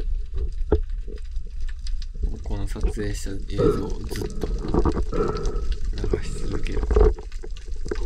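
Water sloshes and thumps with a muffled, underwater sound.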